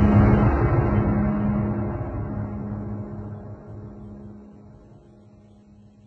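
A huge explosion roars and rumbles, slowly fading away.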